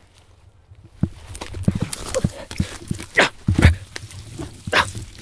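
Twigs and brush crackle underfoot as a man pushes through scrub.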